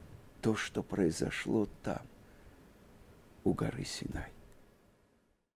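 An older man speaks calmly and warmly into a close microphone.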